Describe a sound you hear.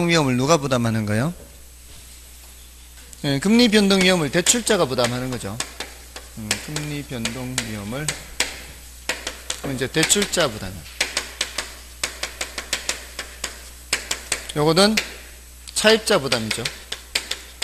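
A man speaks calmly into a microphone, lecturing.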